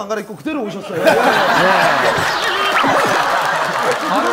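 A group of men and women laugh and chatter loudly together.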